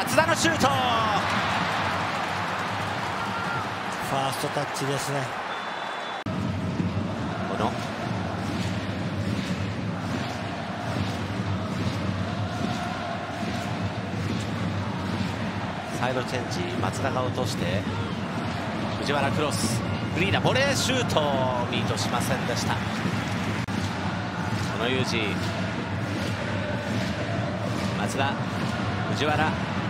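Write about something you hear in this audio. A large crowd cheers and chants steadily in a stadium.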